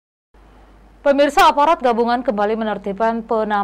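A young woman speaks clearly and calmly into a microphone.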